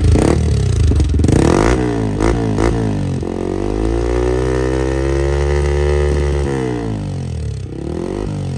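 A motorcycle engine revs up and falls back several times.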